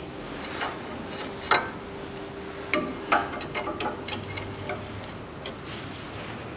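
A metal wrench clicks and clanks against car parts.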